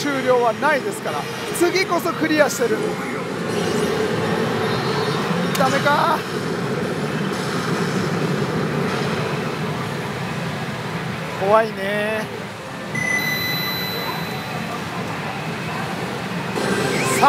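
A pachinko machine plays loud electronic music and sound effects.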